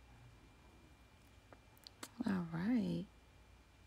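A small brush rubs softly against a cloth pad.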